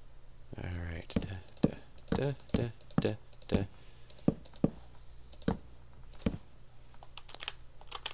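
Wooden blocks thud softly as they are placed one after another.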